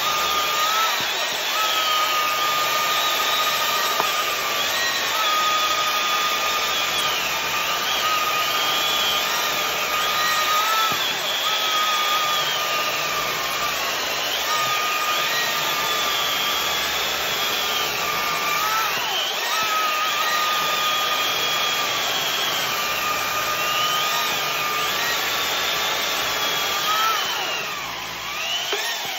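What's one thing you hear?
Two electric chainsaws whine steadily as they cut through logs.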